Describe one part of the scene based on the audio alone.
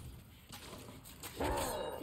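Swords clash in a fight.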